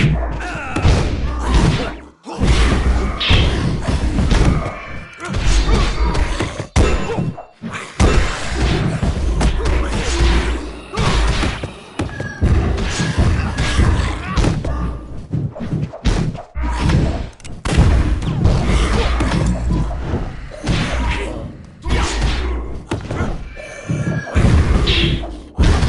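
Fiery blasts burst with loud booms.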